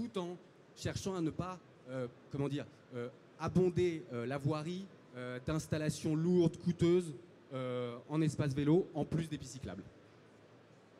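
A man speaks with animation through a microphone and loudspeakers.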